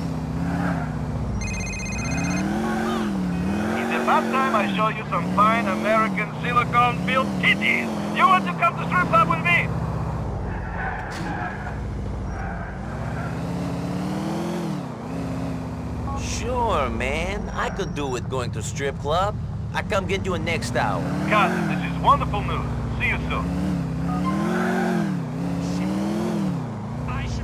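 A car engine hums and revs up and down as a car drives along.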